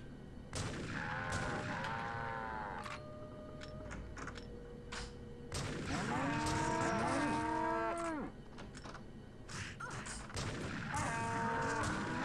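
A creature groans and moans.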